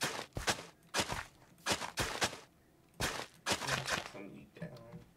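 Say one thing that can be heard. A hoe scrapes into soil in short bursts.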